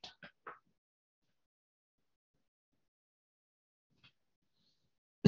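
An older man speaks calmly and closely into a microphone, with pauses.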